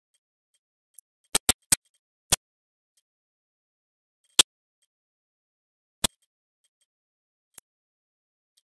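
Sharp menu clicks tick now and then.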